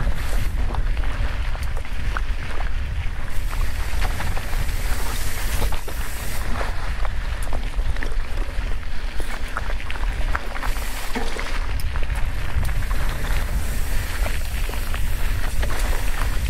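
Bicycle tyres crunch and rattle over a dry gravel trail.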